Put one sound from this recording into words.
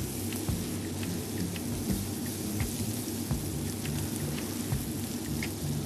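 A metal spoon taps and scrapes against a frying pan.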